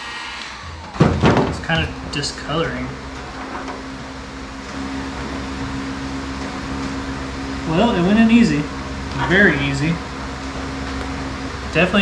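A heat gun blows with a steady whir.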